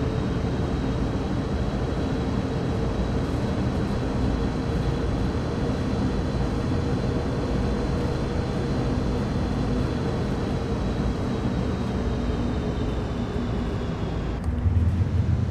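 A diesel locomotive engine rumbles steadily from inside the cab.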